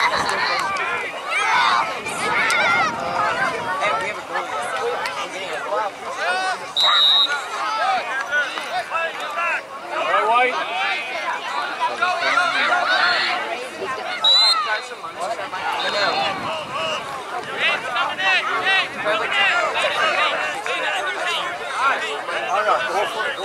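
A crowd of children and adults shouts and cheers outdoors.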